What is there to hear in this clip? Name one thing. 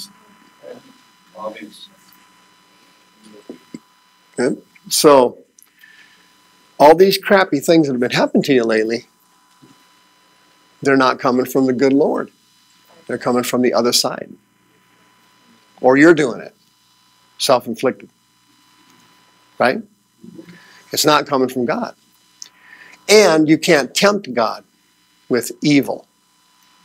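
A man speaks calmly to an audience through a microphone.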